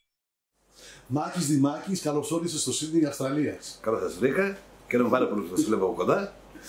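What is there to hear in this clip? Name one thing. A middle-aged man speaks calmly and with warmth, close to a microphone.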